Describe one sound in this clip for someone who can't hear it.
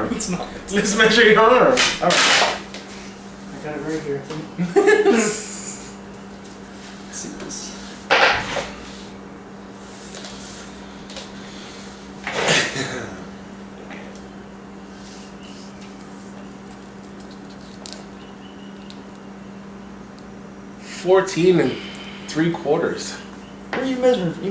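Two young men laugh close by.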